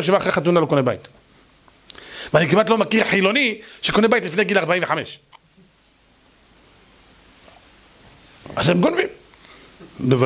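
A middle-aged man speaks with emphasis into a microphone, pausing between phrases.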